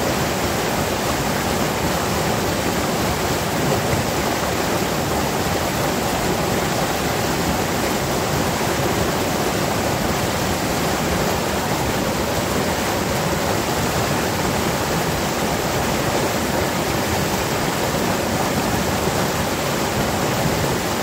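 A fast stream rushes and splashes loudly over rocks close by.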